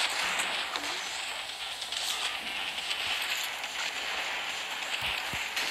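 Water rushes and splashes.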